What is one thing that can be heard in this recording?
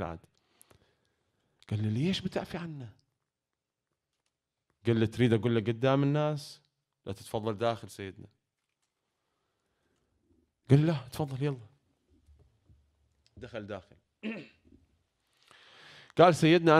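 A young man speaks with emotion into a microphone, in short bursts with pauses.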